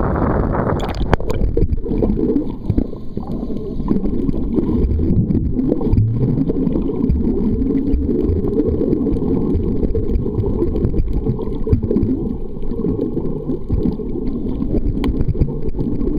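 Water rushes and rumbles, heard muffled from underwater.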